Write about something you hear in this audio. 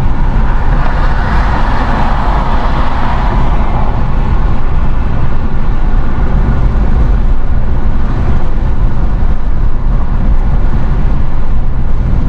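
A car's engine hums and its tyres roar steadily on the road at highway speed from inside the car.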